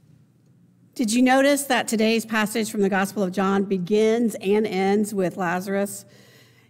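An older woman speaks calmly into a microphone.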